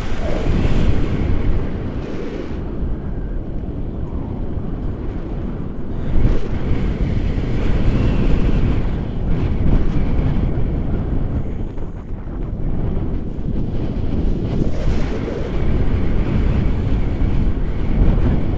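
Strong wind roars and buffets against a microphone.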